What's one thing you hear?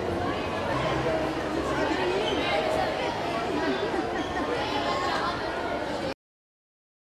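Young boys laugh and shout close by.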